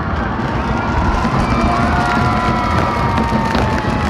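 A firework fountain crackles and hisses.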